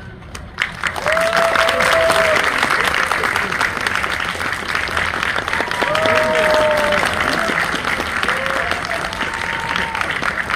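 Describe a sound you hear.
Young women in an audience scream with excitement.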